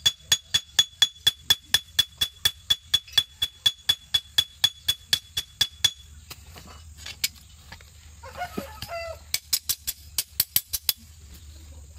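A hammer rings in quick, steady blows on hot metal.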